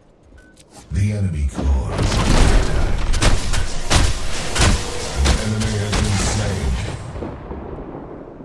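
Weapons fire and blast in rapid, heavy bursts.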